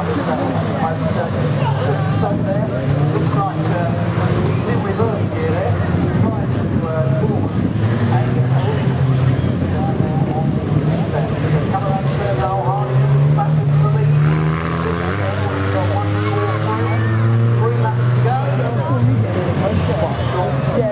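Race car engines roar and rev loudly.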